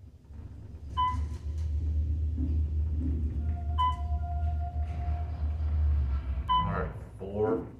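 An elevator motor hums low and steady as the car descends.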